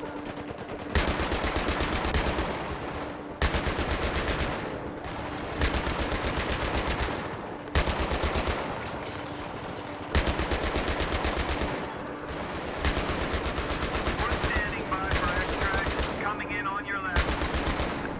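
A heavy machine gun fires long, rapid bursts close by.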